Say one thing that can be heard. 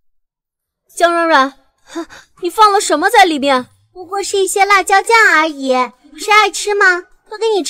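A young girl asks questions with animation.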